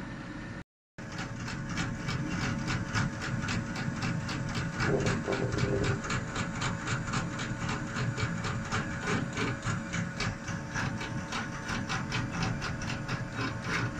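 A machine whirs and clicks rapidly in a steady rhythm.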